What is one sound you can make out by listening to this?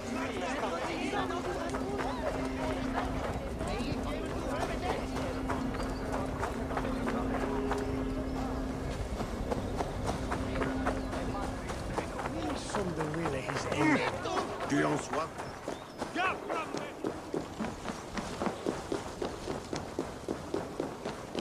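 Footsteps run quickly over earth and stone.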